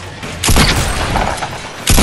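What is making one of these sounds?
A gun fires in rapid shots.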